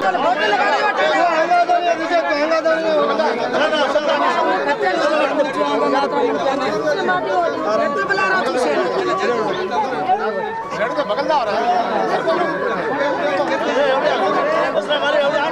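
A crowd of men and women talk over one another nearby.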